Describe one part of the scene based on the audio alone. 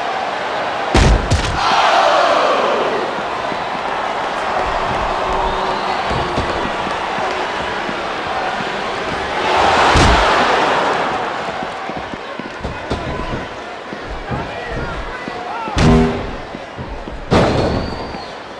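Heavy thuds of bodies hitting the floor ring out a few times.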